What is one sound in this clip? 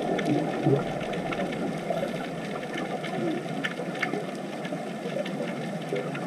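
Air bubbles from divers gurgle and rumble underwater.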